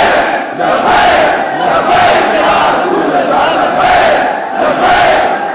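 Hands clap rhythmically in a crowd.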